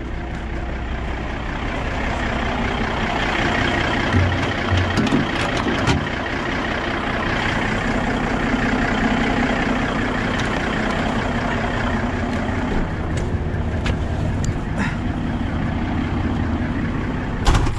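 A large diesel truck engine idles with a steady rumble.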